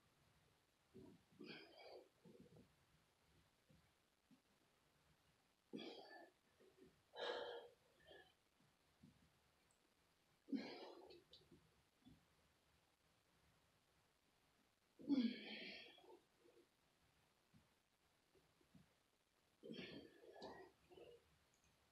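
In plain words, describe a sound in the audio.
A young woman breathes out heavily in short bursts close by.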